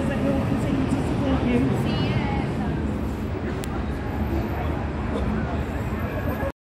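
A woman speaks loudly into a microphone through a loudspeaker outdoors.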